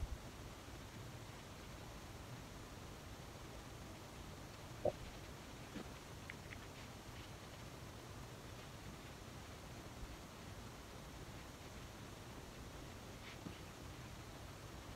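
A makeup sponge dabs softly against skin.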